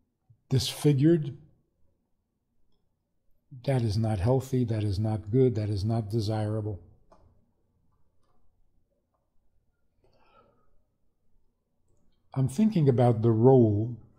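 An elderly man speaks calmly and thoughtfully into a close microphone, with pauses.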